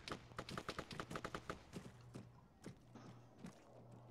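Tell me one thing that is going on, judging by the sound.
Footsteps thud on a hard floor indoors.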